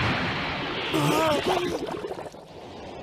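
A man strains and groans through clenched teeth.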